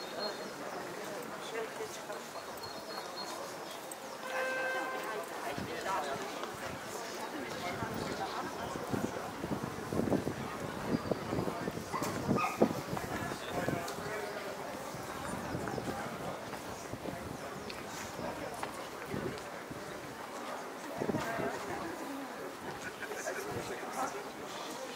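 Many adults chatter in a murmur of voices outdoors.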